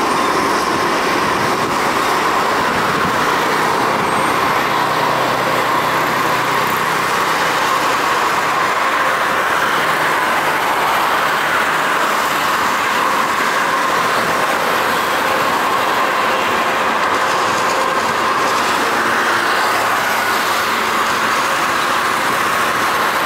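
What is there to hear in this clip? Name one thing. Water spray hisses off a wet runway.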